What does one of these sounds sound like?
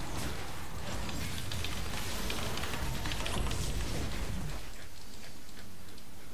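Game spells crackle and burst in a busy fight.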